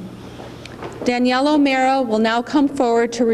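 A middle-aged woman speaks into a microphone over a loudspeaker.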